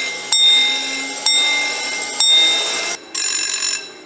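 A railway crossing bell strikes loudly three times, each stroke ringing out.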